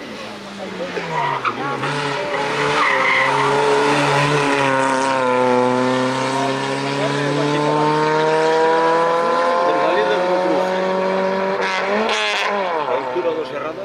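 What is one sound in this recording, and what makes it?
A rally car engine revs hard and climbs in pitch as it races past.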